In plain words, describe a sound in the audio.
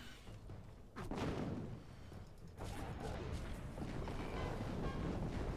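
Fiery magic blasts roar and crackle during a fight.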